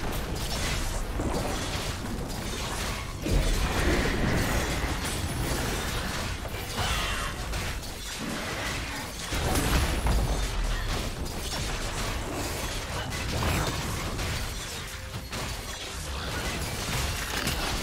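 Game spell effects and attacks crackle and blast in a busy battle.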